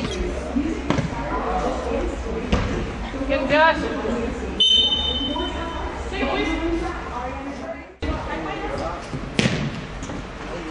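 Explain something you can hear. Boys shout to each other across an echoing indoor arena.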